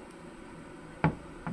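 A glass bottle knocks down onto a wooden table.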